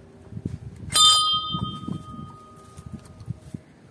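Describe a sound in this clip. A brass bell rings once with a clear, lingering tone.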